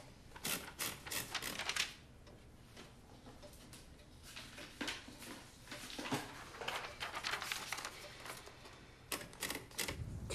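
Paper rustles and crackles close by.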